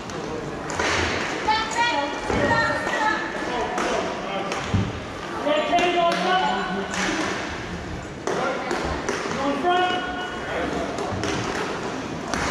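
Skates scrape and roll across a hard floor in a large echoing hall.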